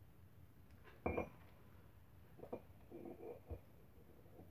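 Small metal parts clink against each other.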